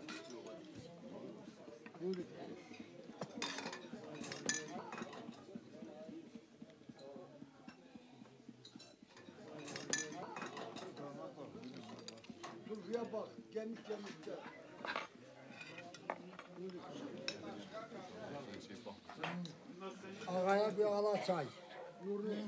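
Dishes and cups clink.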